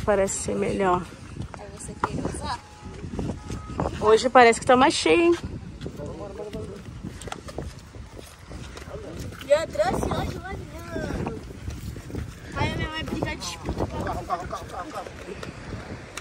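Young women talk and exclaim excitedly close by, outdoors.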